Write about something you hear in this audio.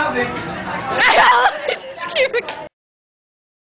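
A teenage boy laughs loudly nearby.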